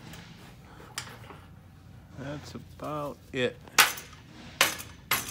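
Gloved fists thump hard against a heavy punching bag.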